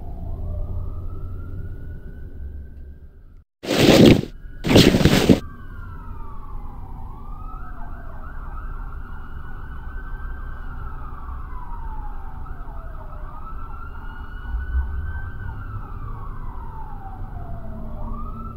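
Eerie electronic music with slow sliding tones plays.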